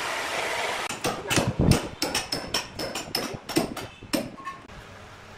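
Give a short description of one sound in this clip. A hammer taps a metal wedge into a log.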